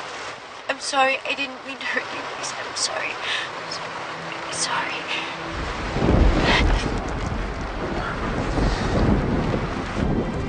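A young woman speaks tearfully, close by.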